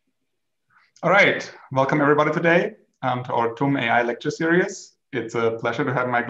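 A man speaks calmly and close through an online call.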